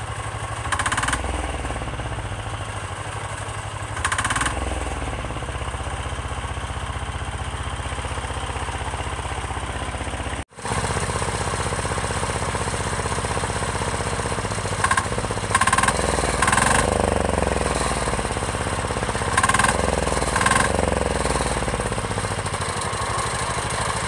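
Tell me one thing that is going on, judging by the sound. A small engine idles with a steady, rapid chug.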